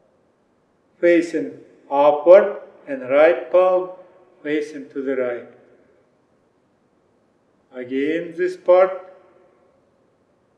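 A man speaks calmly and clearly into a microphone, giving instructions.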